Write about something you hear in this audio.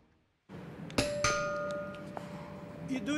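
A doorbell chimes.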